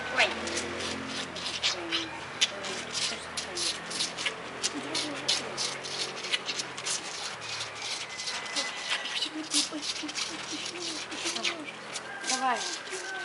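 A young moose calf sucks and slurps noisily on a milk bottle.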